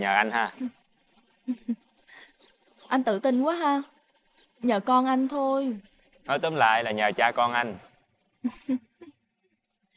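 A young woman talks calmly up close.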